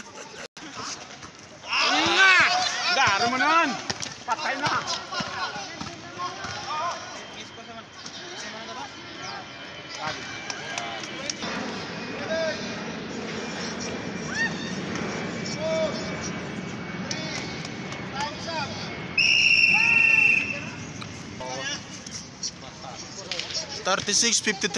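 Young players shout and cheer outdoors.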